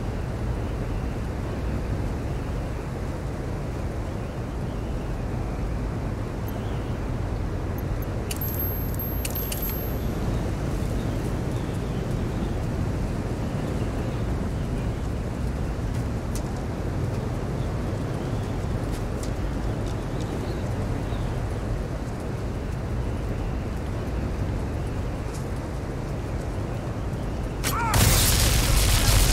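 A low rumble drones steadily.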